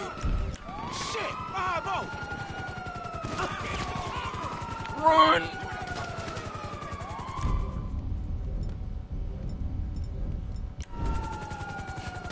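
Footsteps run quickly on pavement.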